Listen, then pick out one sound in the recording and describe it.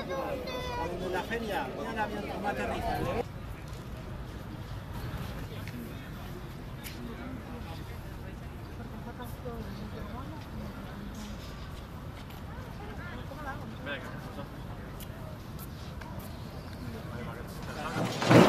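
A crowd of football fans chatters outdoors.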